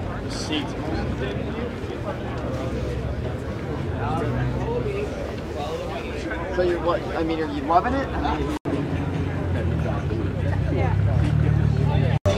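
People chatter in a crowd outdoors.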